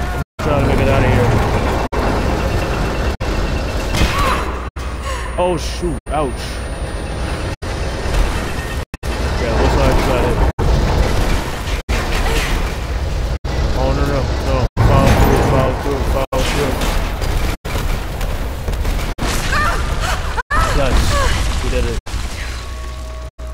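Deep rumbling and crashing debris play from a game.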